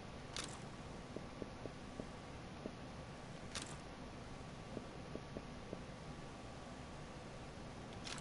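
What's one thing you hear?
A game menu gives short clicks as items are selected.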